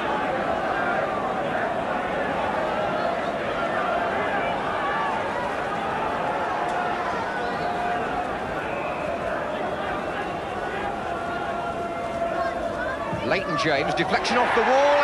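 A large stadium crowd murmurs in the open air.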